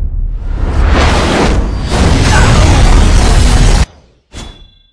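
Magic blasts crackle and boom loudly.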